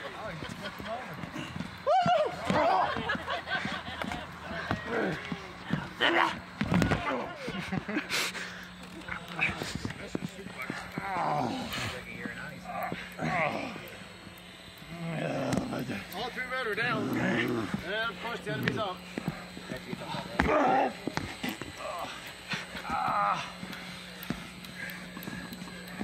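A man grunts and shouts with strain at close range.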